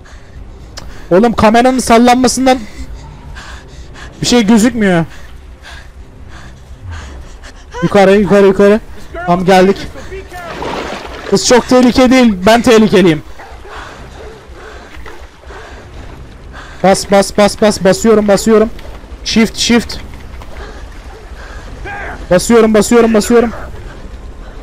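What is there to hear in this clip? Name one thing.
A young man talks with animation into a close microphone, in bursts.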